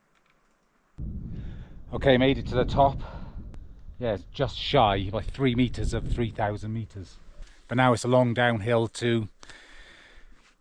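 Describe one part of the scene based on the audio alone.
A middle-aged man talks calmly and closely into a microphone.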